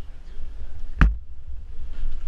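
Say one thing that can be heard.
A gunshot cracks sharply once, close by.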